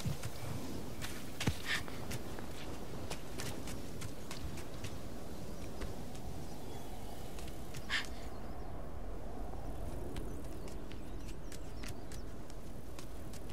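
Light footsteps patter on stone.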